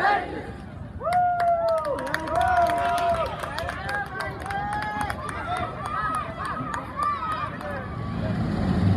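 A crowd of young people cheers and whoops with high shrieks.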